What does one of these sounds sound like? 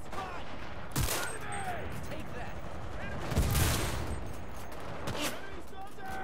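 Rifle shots crack loudly, several times.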